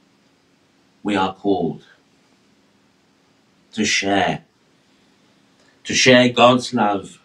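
A middle-aged man chants slowly into a microphone, in short phrases.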